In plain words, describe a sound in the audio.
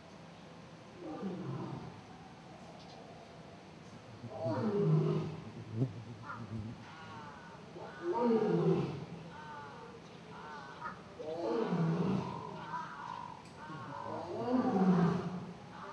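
A lion roars loudly in a series of deep, grunting calls that grow stronger.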